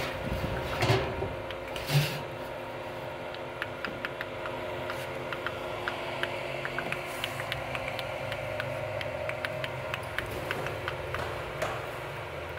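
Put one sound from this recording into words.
Honey pours from a pipe into a plastic drum, trickling and dripping.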